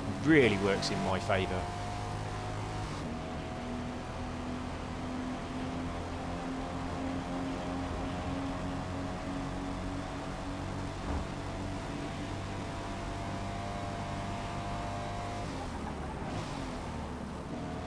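A car engine hums steadily at high revs, easing off near the end.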